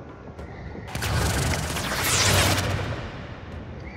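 An energy blast whooshes loudly.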